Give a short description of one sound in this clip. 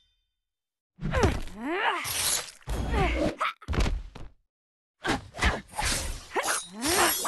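Energy blasts zap and crackle.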